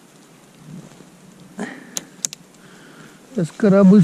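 Dry branches rustle and snap as a hand pulls them from a pile.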